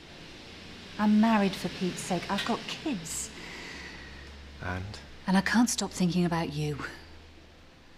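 A woman speaks quietly and emotionally, close by.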